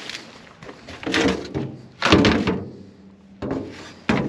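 A plastic basket knocks and rattles.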